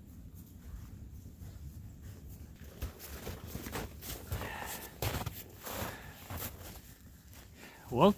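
Footsteps crunch through snow, coming closer.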